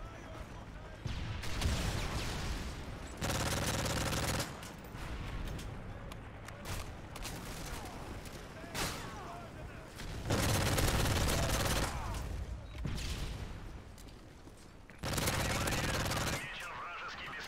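Gunfire rattles in loud rapid bursts.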